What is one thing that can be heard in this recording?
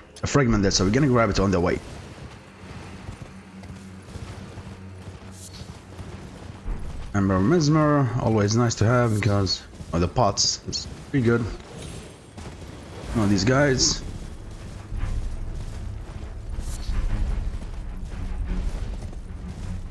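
A horse gallops with hooves thudding on earth and stone.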